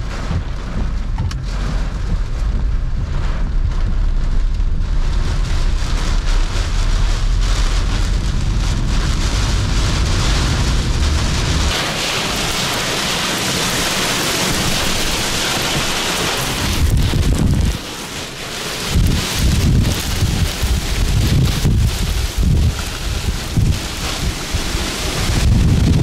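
Heavy rain pelts against a car windshield.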